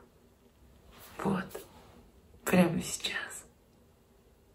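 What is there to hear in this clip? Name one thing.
A young woman speaks softly and close by in short bursts.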